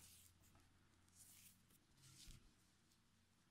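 Yarn rustles softly as a crochet hook pulls it through.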